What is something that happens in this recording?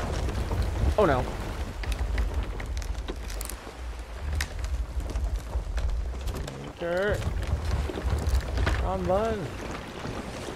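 Wooden ship timbers creak with long, bending groans.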